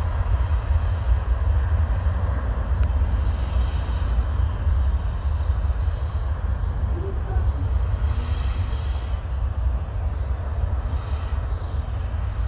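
A jet engine roars steadily far off.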